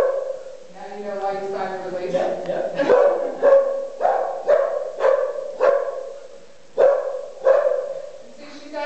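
A woman calls out short commands in an echoing barn.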